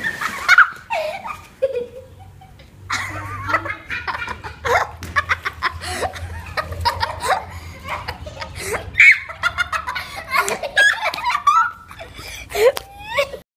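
A young girl talks and laughs excitedly nearby.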